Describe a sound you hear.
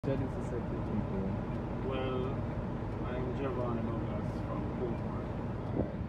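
A truck engine idles with a low, steady hum.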